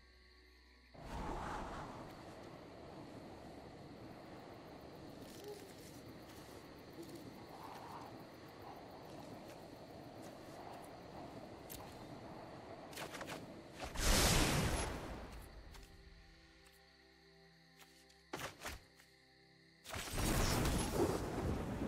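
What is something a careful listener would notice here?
Digital game sound effects whoosh and chime as cards move.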